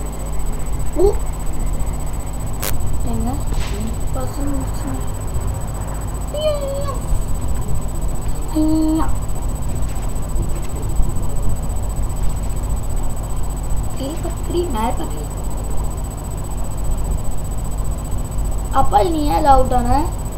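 A boy talks close to a microphone, in short bursts.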